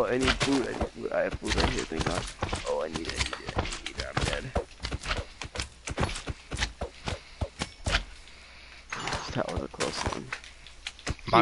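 Blocks crunch under quick, repeated digging blows.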